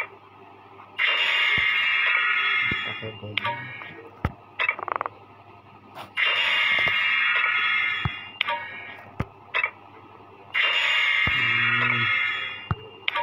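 A bright, shimmering game reward chime plays several times.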